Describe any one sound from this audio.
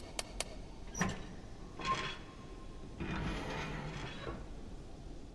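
A heavy metal safe door unlatches and creaks open.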